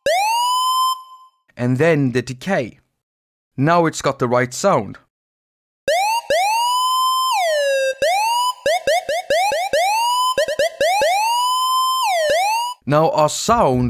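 An electronic synthesizer plays short notes that swoop up and down in pitch.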